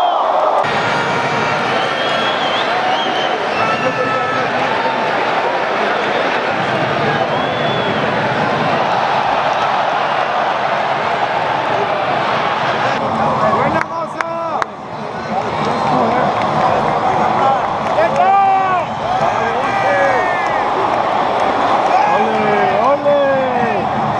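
A large crowd roars and cheers in a vast indoor stadium.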